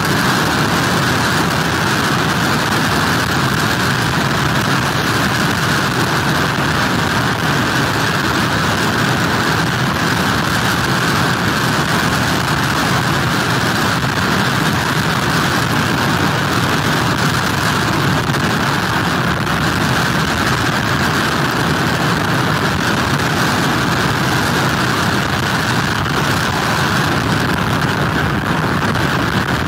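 Strong wind roars steadily outdoors.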